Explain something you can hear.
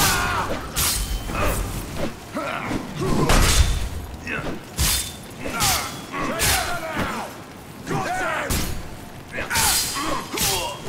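Men grunt and shout as they fight.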